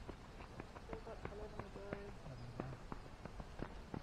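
Footsteps shuffle on gravel.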